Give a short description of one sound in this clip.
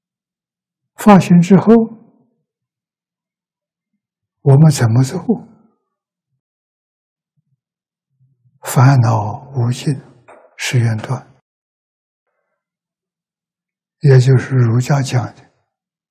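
An elderly man speaks calmly into a close microphone in short phrases with pauses.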